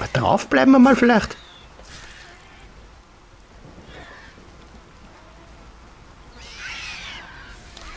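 Blades whoosh and slash in a fierce fight.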